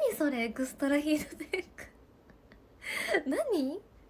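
A young woman laughs lightly.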